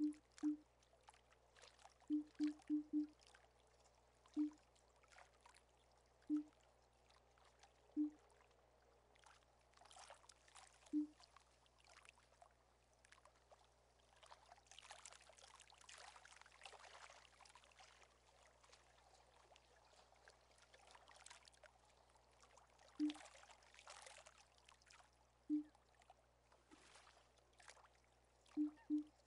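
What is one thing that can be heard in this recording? Short soft blips sound as a menu selection moves.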